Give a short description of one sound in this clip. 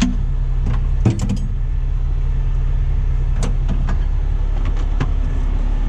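Metal tools clink and rattle in a drawer.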